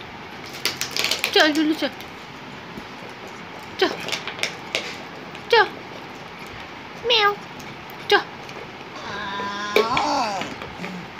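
A dog whines and yelps in short, high, sliding cries.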